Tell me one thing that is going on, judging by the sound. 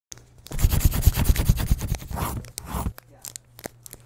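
A pencil scribbles quickly on paper.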